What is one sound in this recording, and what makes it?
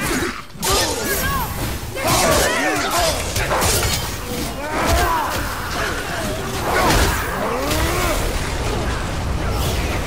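Creatures screech with high, swooping cries.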